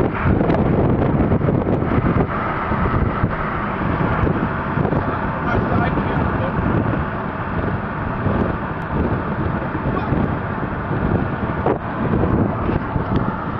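Tyres roar steadily on a road from a moving car.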